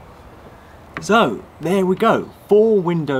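A man speaks calmly and cheerfully close by.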